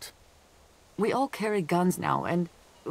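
A woman speaks with a slightly tense tone.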